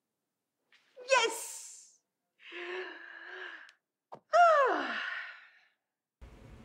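A woman laughs loudly and happily.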